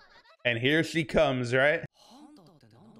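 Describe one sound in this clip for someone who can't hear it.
A man laughs heartily, close to a microphone.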